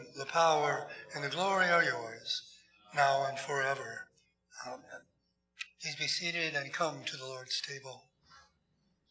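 An elderly man speaks calmly through a microphone in an echoing hall.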